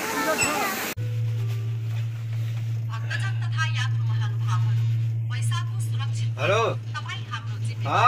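A cable car hums with a low, steady drone.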